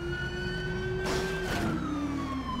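Another car whooshes past at close range.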